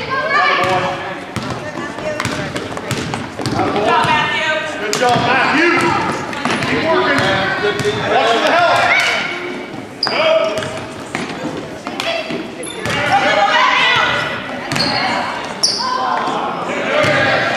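Spectators shout and cheer nearby.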